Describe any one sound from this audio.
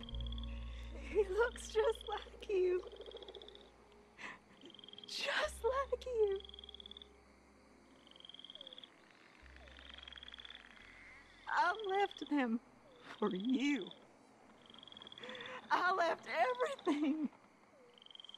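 A woman speaks in a wailing, ghostly voice with strong emotion.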